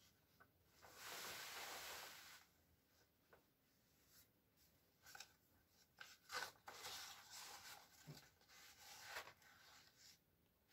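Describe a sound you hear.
A plastic sheet rustles and crinkles as it is dragged across a floor.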